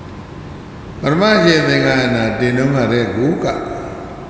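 An elderly man speaks slowly and steadily into a microphone.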